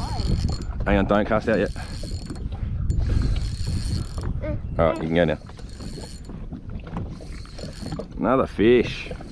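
Wind buffets the microphone outdoors on open water.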